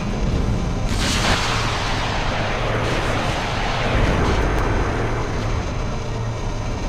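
A magic spell bursts with a bright whoosh that slowly fades.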